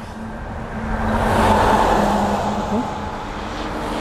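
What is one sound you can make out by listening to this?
A heavy truck rumbles past close by.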